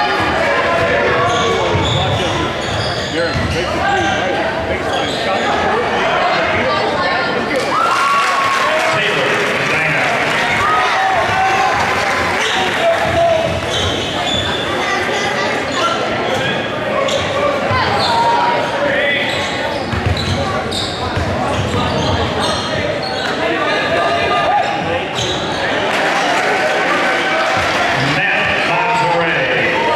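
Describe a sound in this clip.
A crowd cheers and chatters throughout in a large echoing gym.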